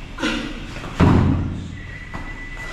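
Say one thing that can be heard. Heavy dumbbells thud onto a hard floor.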